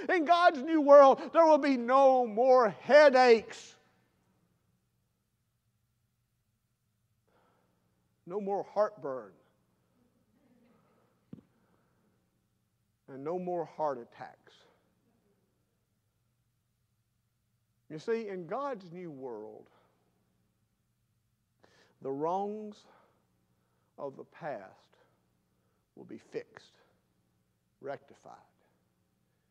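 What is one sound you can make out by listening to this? An older man speaks slowly and deliberately into a microphone, with long pauses.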